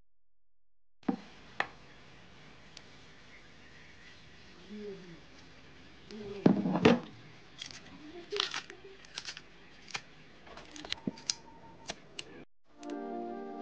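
Water splashes as hands rub fruit in a bowl.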